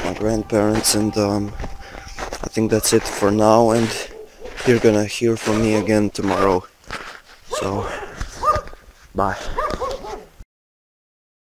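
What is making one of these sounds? A young man talks close to a phone's microphone.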